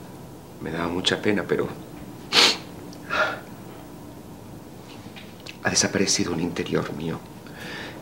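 A man speaks quietly and haltingly, close by.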